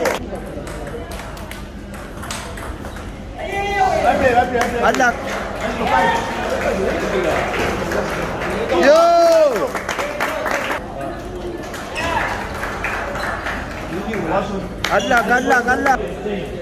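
A ping-pong ball clicks back and forth off paddles and a table in a large echoing hall.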